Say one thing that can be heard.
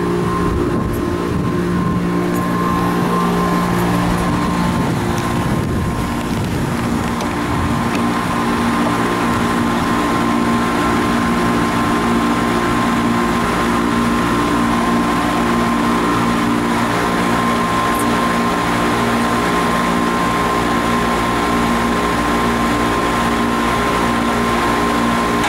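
Air conditioning units hum steadily close by.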